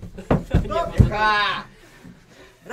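A man cries out loudly.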